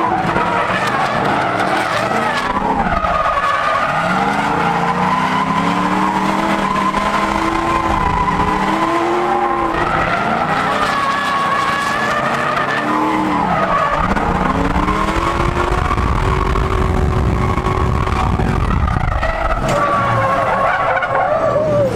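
Tyres screech on pavement.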